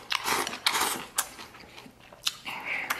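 A man chews and smacks his lips.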